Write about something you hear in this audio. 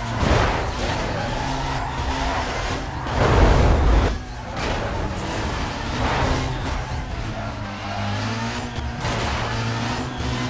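A car engine roars at high speed and revs up and down.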